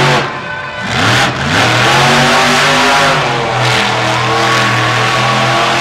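A monster truck engine roars loudly, revving up and down.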